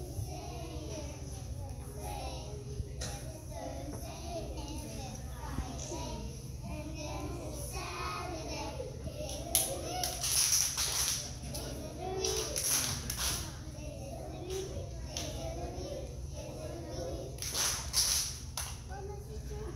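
Young children clap their hands.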